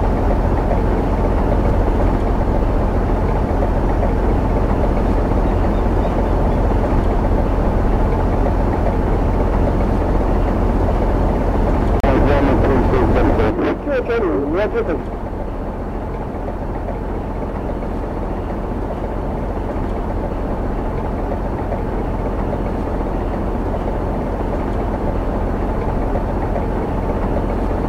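Rough waves splash and rush around a boat.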